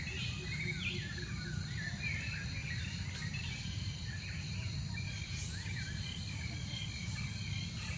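Leaves and twigs rustle as a small monkey climbs through branches.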